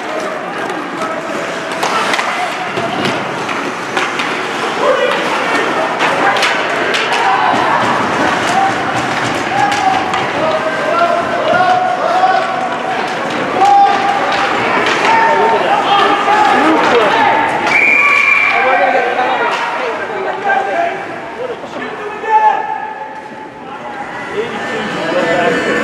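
Skates scrape and hiss on ice.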